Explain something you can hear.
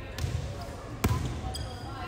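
A volleyball is struck with a sharp slap.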